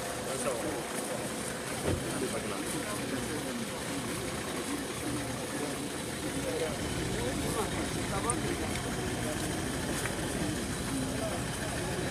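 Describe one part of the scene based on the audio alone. A crowd of men talk over one another outdoors.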